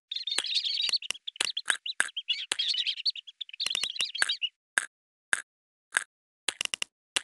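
Short bright pops sound as a chick picks up seeds.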